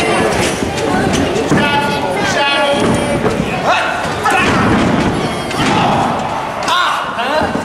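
Wrestlers' feet thud on a ring mat.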